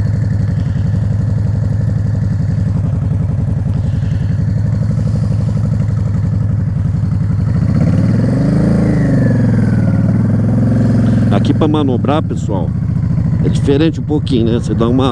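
A motorcycle engine idles with a steady, low, throbbing rumble close by.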